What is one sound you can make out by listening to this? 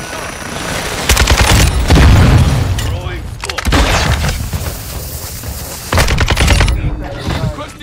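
Rifle shots ring out in quick bursts.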